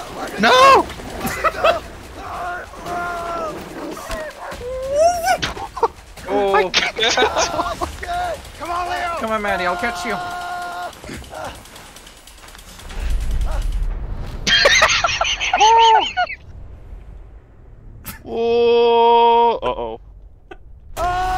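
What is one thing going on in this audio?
Young women talk and laugh with animation through a microphone.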